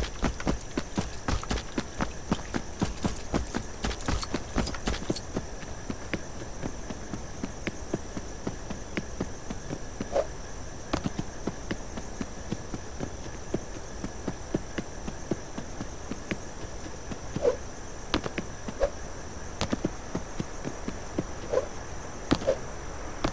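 Quick footsteps patter across soft ground in a game.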